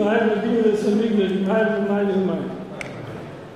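An elderly man chants loudly through a microphone in a large echoing hall.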